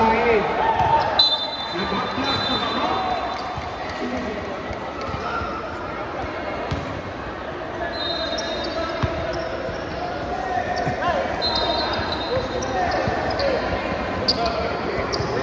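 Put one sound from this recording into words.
Voices of a crowd chatter in a large echoing hall.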